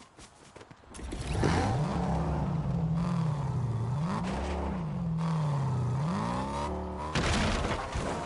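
A car engine revs and hums steadily, rising and falling in pitch.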